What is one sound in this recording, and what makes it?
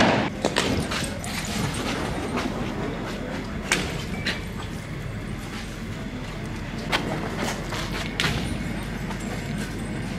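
An armoured vehicle's engine rumbles close by.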